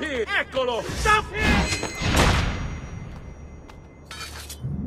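A blade strikes hard in a short scuffle.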